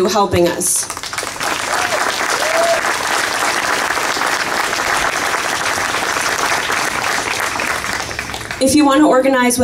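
A crowd claps and applauds outdoors.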